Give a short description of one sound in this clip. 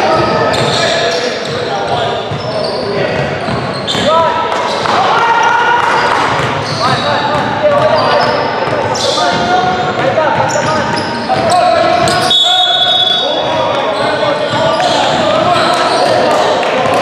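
Young men call out and talk loudly across the court.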